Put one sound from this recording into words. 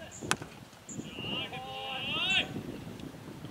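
Men shout excitedly outdoors at a distance.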